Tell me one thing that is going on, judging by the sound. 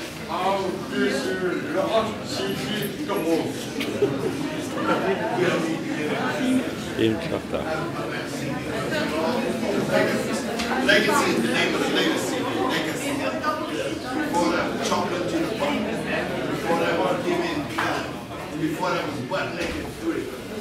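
A crowd of men and women chatter all around in a crowded, echoing room.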